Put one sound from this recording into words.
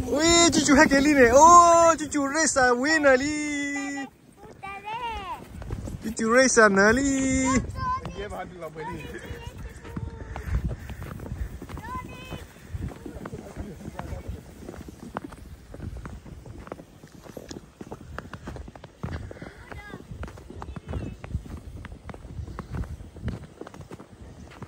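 A sled scrapes and hisses over snow.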